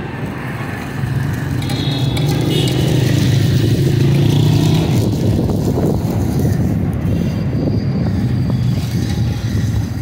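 Batter sizzles and crackles in hot oil.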